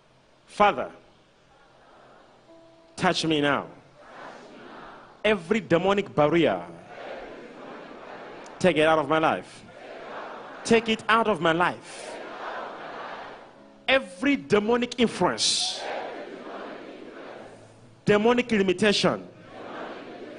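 A young man preaches loudly through a microphone in short, forceful bursts, echoing in a large hall.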